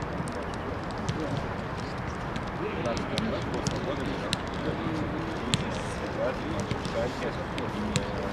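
Footballs thud as players kick and juggle them.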